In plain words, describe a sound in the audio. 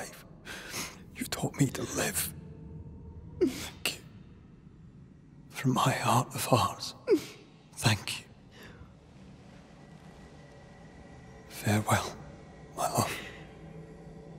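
A young woman speaks softly and with emotion, close by.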